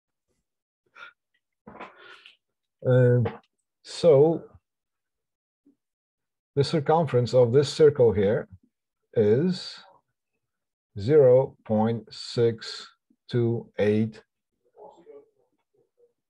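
A man talks calmly and clearly into a close microphone.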